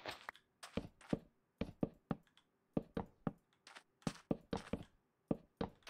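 Footsteps tap quickly across wooden planks.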